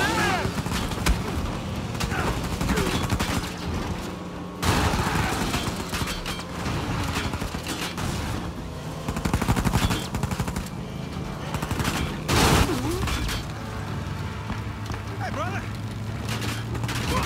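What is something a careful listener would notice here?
A jeep engine roars as it speeds over a dirt road.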